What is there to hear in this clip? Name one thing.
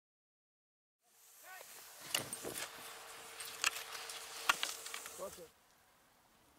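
Skis scrape on snow close by.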